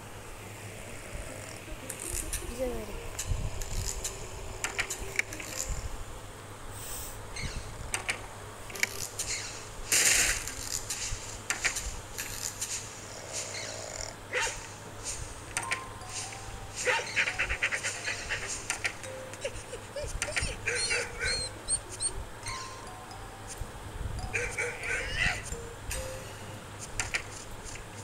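Short cartoon sound effects play in a game.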